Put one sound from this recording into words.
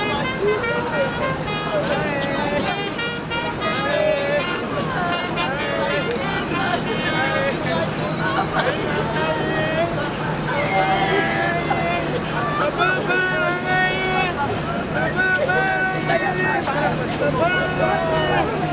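Women wail and sob loudly close by.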